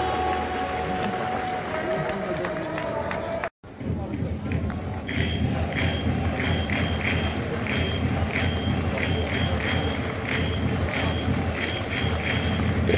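A crowd murmurs throughout a large, echoing stadium.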